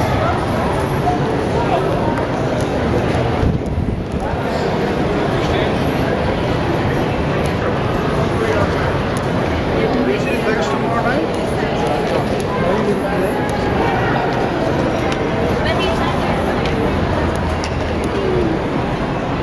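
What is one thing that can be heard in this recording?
Footsteps shuffle across a hard floor.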